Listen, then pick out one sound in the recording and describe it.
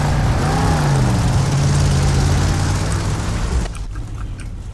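A vehicle engine roars as it drives over rough ground.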